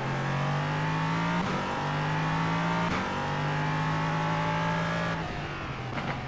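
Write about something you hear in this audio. A racing car engine roars loudly, rising in pitch through each gear.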